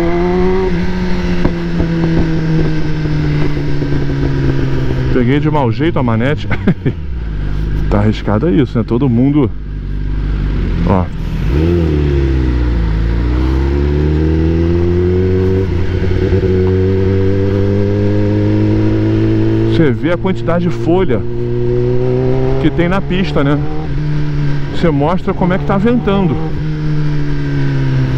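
A motorcycle engine hums steadily, revving up and down as the bike rides along.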